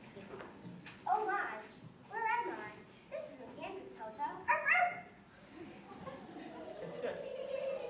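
A young girl speaks loudly in a large echoing hall.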